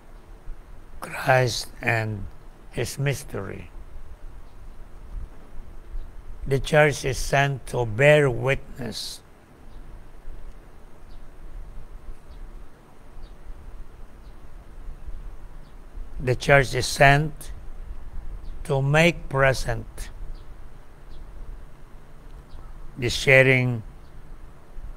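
An elderly man speaks slowly and calmly in short phrases with long pauses, close by.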